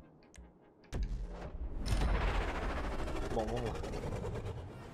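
A car engine roars loudly.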